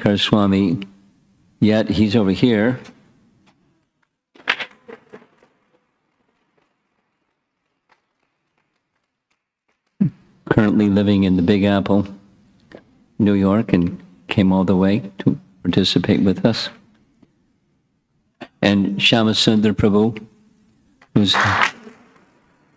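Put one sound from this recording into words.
An elderly man speaks with animation into a close microphone, pausing often.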